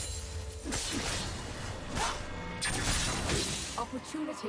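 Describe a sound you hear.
Magic spells crackle and burst in a fast fight.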